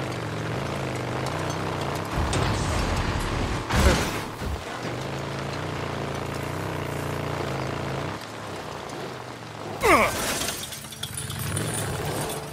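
Motorcycle tyres crunch over dirt and gravel.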